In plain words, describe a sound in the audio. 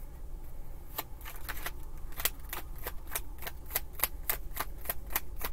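Cards riffle and tap as a woman shuffles a deck.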